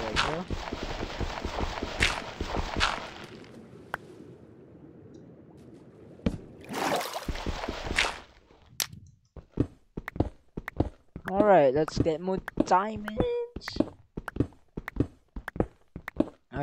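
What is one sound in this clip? A pickaxe taps and breaks stone blocks in quick knocks.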